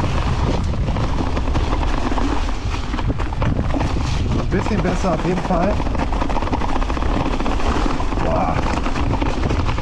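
Bicycle tyres roll and crunch over dry leaves.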